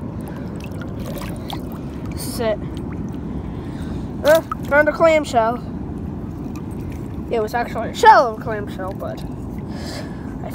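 Shallow water laps gently.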